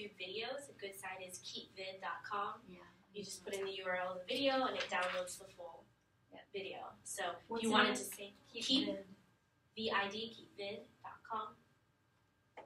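A woman speaks calmly to a room, heard from a short distance.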